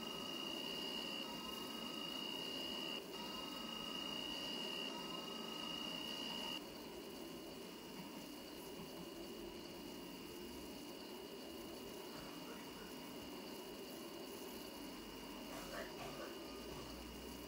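A train rumbles steadily along the rails through a tunnel.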